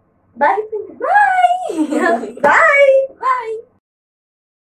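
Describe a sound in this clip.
Two young women call out together with animation, close by.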